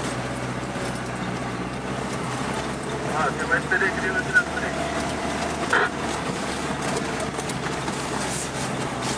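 A Lada Niva's engine drones, heard from inside the cab.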